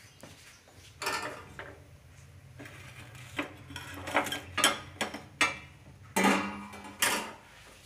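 A wire strainer scrapes and clinks against a metal plate.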